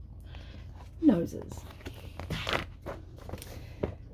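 Book pages rustle as they are turned.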